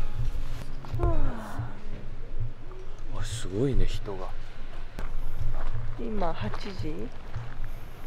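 A young woman speaks softly close by, outdoors.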